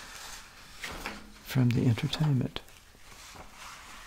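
Paper rustles as pages are turned.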